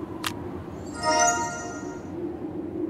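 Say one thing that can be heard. A bright magical chime twinkles briefly.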